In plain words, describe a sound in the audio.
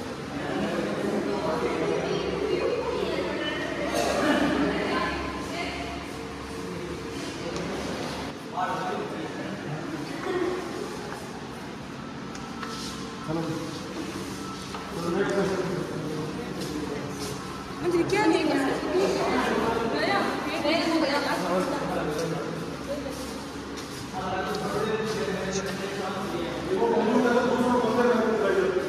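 Several men and women talk at once nearby in a room with some echo.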